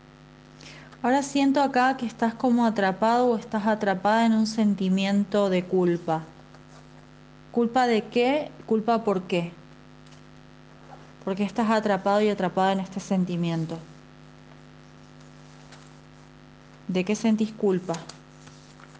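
A young woman speaks calmly and close to a microphone, pausing between phrases.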